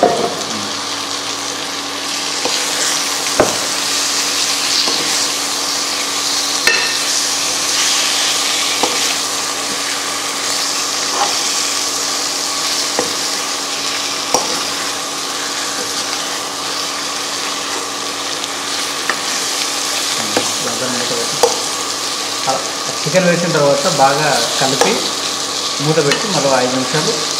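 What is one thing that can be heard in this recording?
Food sizzles and fries in a hot pot.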